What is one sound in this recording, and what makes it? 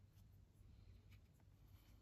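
A brush taps and swishes in a paint tray.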